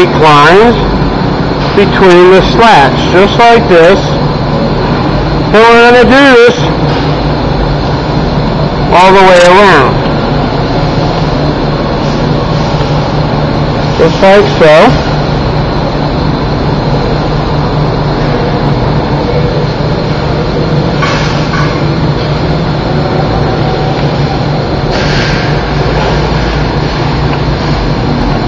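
A fan motor hums steadily.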